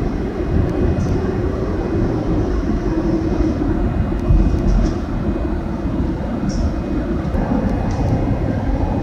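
Train wheels clack and squeal now and then on the rails.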